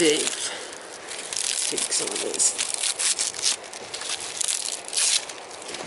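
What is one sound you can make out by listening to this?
Dry birch bark crackles and rustles as a hand peels it from a tree.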